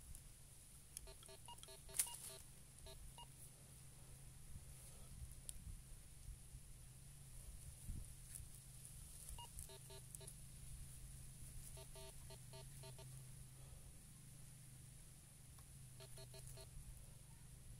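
A metal detector gives bursts of quick electronic beeps.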